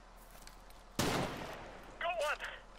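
A rifle fires a single loud shot that rings out.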